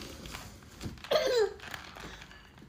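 A baby squeals with delight.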